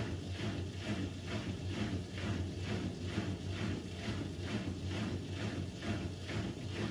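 Water sloshes rhythmically inside a washing machine drum.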